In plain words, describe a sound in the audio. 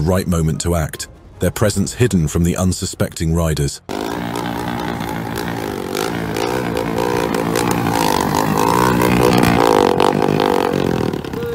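A motorcycle engine revs loudly nearby.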